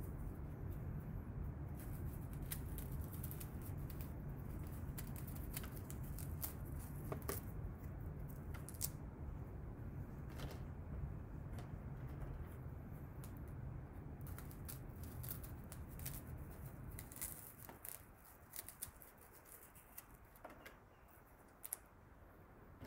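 A knife cuts through strawberries with soft, crisp snips.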